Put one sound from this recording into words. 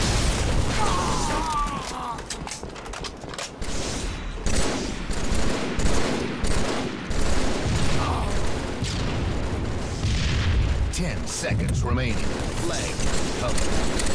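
Rifle gunfire rattles in quick bursts.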